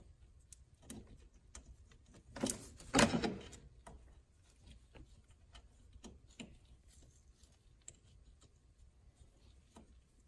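Small metal parts click and clink.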